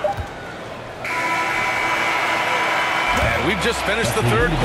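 A buzzer sounds steadily.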